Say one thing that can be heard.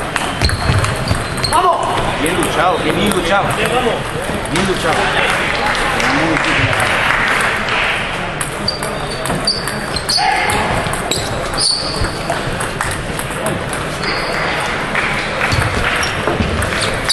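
Table tennis balls click on paddles and tables in a large echoing hall.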